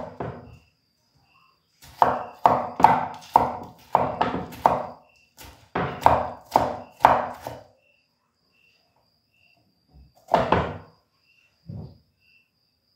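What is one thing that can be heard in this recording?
A knife chops food on a wooden board.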